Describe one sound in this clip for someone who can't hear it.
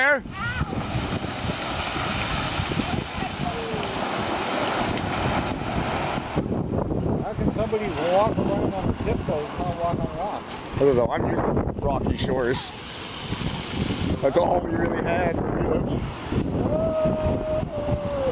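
Waves break and wash over a pebble beach.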